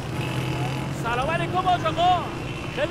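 A man calls out a loud greeting outdoors.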